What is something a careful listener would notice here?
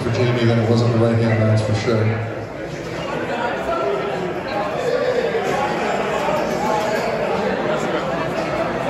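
A man speaks loudly and firmly close by.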